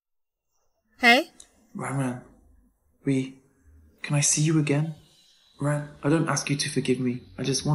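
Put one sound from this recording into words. A young woman speaks softly and emotionally into a phone, close by.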